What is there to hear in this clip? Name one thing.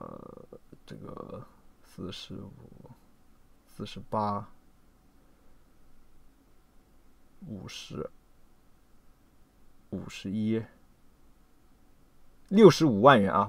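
A man speaks in short bursts close to a microphone, with pauses between phrases.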